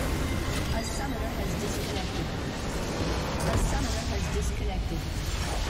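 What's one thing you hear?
A huge crystal explodes with a deep rumbling blast.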